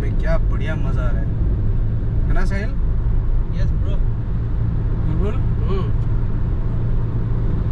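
A car engine rumbles steadily from inside the moving car.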